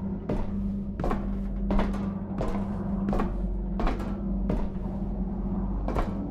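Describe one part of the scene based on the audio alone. Footsteps clang slowly and steadily on metal stairs.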